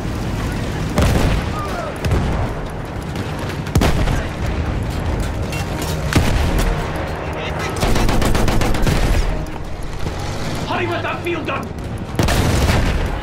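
Explosions boom nearby, one after another.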